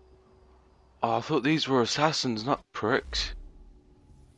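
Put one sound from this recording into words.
A second man answers with animation.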